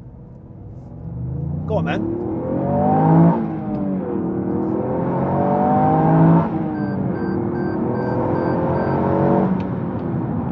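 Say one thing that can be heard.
A car engine revs hard and climbs through the gears.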